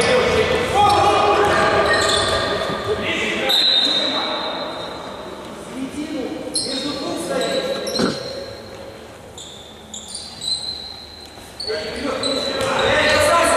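Men shout to each other during a game in an echoing hall.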